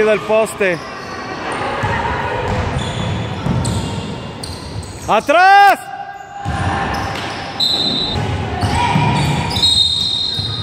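Young women shout and call out to each other across an echoing hall.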